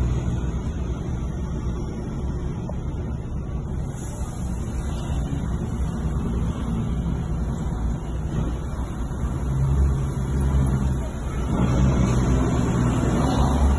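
A heavy truck engine rumbles low and steady just ahead.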